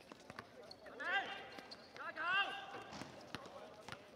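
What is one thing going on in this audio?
Sneakers squeak on the court surface.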